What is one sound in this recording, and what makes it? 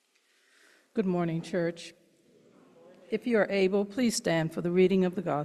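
A woman speaks calmly into a microphone, heard through a loudspeaker in a large echoing room.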